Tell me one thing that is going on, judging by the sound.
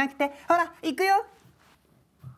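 A woman speaks brightly and quickly, close by.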